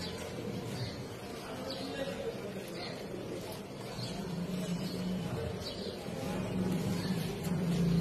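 Bird wings flap and beat rapidly close by.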